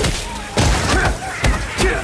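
A video game lightning spell crackles and strikes.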